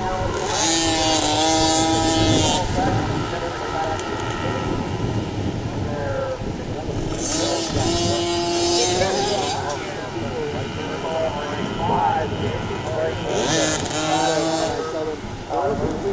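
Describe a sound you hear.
Small motorbike engines buzz and whine, revving up and down as they race past.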